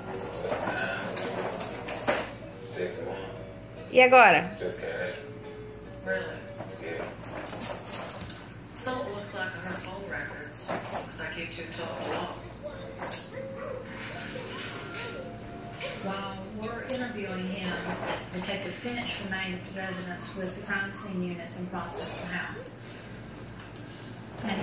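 A plastic baby walker rattles and rolls over a tiled floor.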